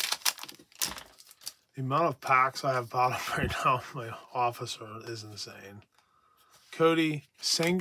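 Trading cards rustle as they are shuffled by hand.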